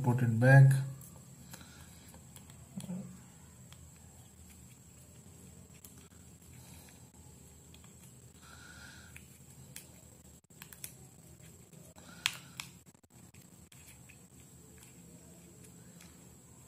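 Small plastic parts click softly as hands fit them together.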